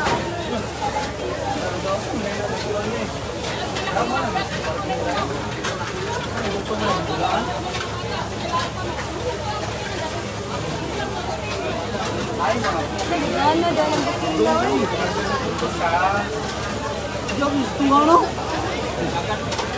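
Several men talk loudly nearby.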